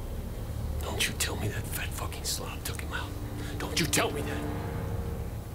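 A young man speaks angrily, close by.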